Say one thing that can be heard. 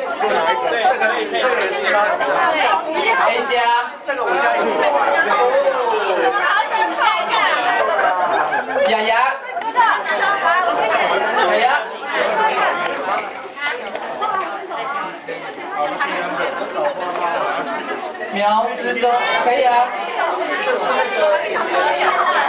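A crowd of men and women chatter and laugh nearby.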